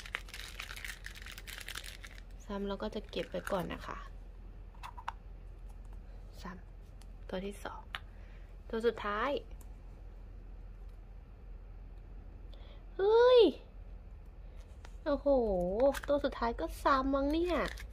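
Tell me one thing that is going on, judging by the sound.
Plastic capsules click and rattle as they are opened and handled.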